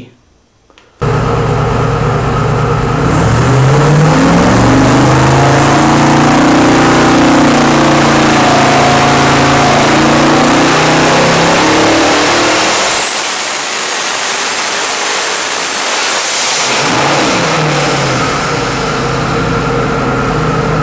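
A big engine roars loudly, revving up and down.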